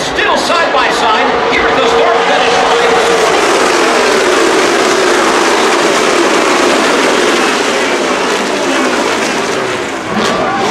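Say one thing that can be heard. Race car engines roar past at speed.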